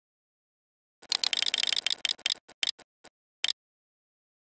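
A prize wheel spins with rapid ticking clicks.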